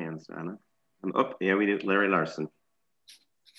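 A middle-aged man speaks over an online call.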